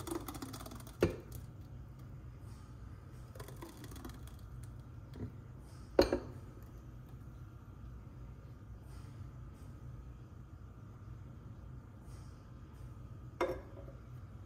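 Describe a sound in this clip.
A container knocks against a glass bowl.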